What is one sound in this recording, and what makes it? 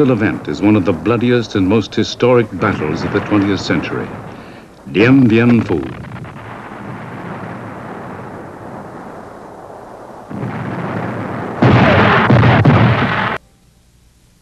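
Explosions boom and rumble across open ground.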